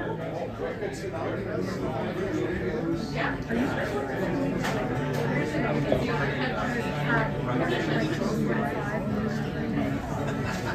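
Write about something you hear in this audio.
An electric guitar plays a melody over a speaker.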